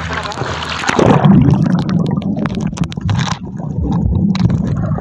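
Muffled underwater bubbling and rumbling.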